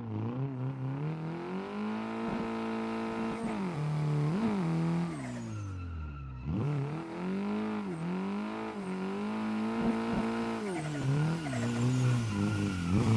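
Car tyres squeal as the car slides sideways.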